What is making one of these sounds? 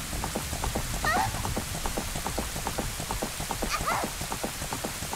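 A horse whinnies shrilly.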